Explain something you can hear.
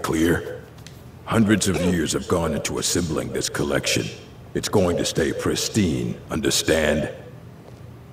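An elderly man speaks calmly in a deep voice.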